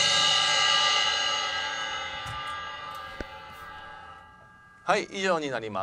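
Cymbals ring out and slowly fade.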